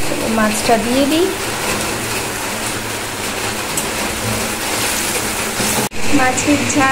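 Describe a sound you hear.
Oil sizzles and bubbles in a frying pan.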